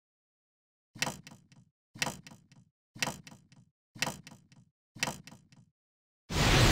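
A clock ticks loudly, once a second.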